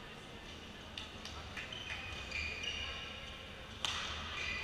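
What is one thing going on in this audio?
A shuttlecock is hit with rackets in a large echoing hall.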